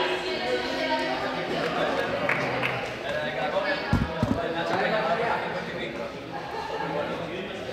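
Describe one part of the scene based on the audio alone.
Many young people chatter and call out in a large echoing hall.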